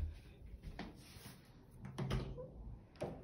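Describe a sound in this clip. A door handle clicks as it is pressed down.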